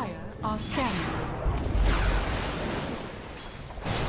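A magical blast whooshes and rumbles.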